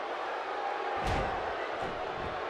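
A body slams heavily onto a wrestling mat with a loud thud.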